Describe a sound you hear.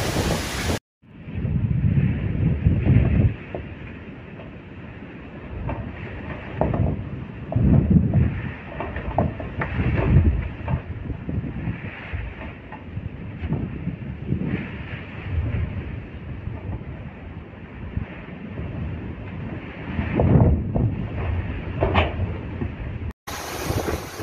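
Sea waves surge and crash against a wall.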